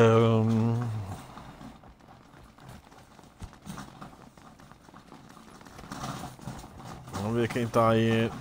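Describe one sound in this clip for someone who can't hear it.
Footsteps run across gravel.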